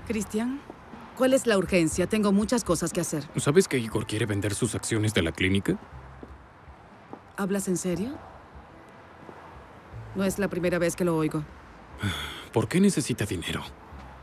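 A woman answers a man calmly up close.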